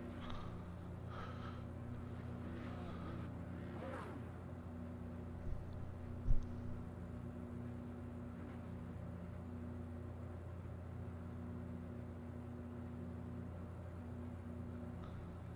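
A car engine idles with a steady low drone.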